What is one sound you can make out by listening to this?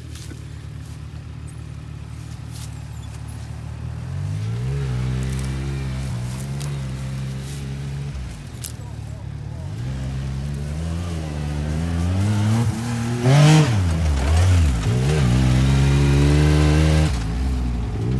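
A sport side-by-side engine revs as it climbs a steep slope.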